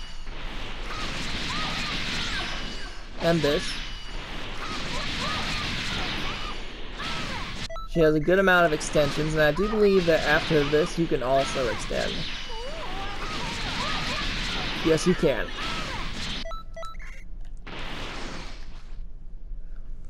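Energy beams whoosh and roar.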